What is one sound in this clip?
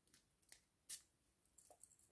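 Small plastic items click and tap in a woman's hands.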